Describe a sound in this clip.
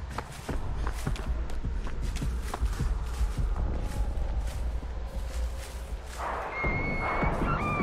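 Footsteps crunch over dry leaves.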